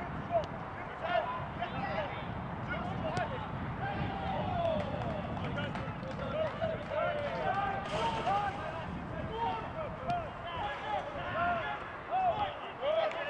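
Players shout and call to each other outdoors.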